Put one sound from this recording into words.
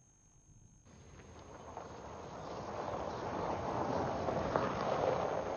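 A car engine hums as a car rolls slowly closer.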